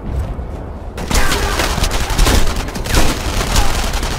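Rifle shots ring out loudly with echoes.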